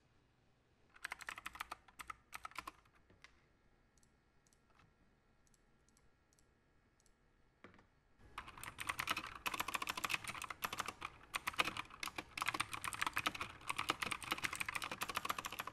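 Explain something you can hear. Keys clatter rapidly on a computer keyboard.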